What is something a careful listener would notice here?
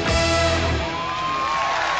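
A band ends a song with a loud final chord.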